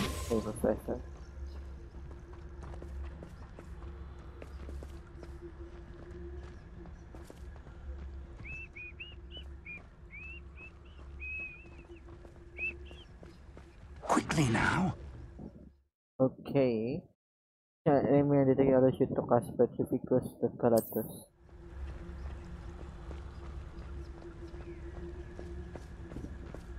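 Footsteps crunch quickly on a gravel path.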